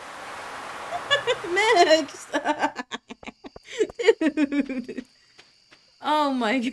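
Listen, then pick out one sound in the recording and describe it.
A young woman laughs into a close microphone.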